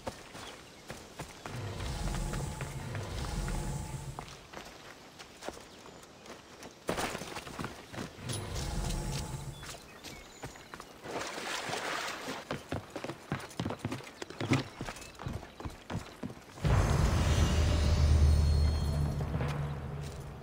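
Footsteps rustle through grass and tap on stone.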